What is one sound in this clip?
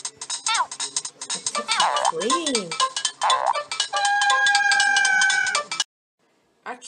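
Video game music and sound effects play with bouncy tones and chirps.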